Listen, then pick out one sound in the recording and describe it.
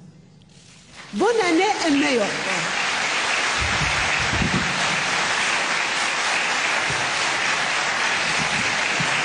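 A crowd applauds steadily in a large hall.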